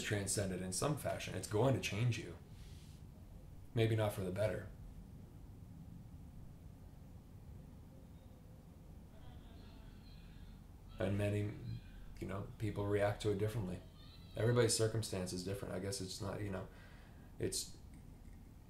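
A man speaks calmly and thoughtfully, close by, with long pauses.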